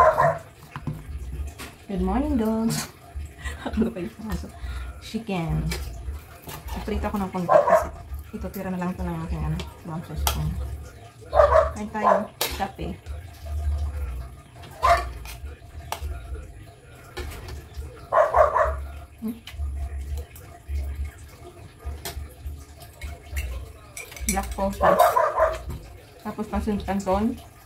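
A fork and spoon scrape and clink on a plate.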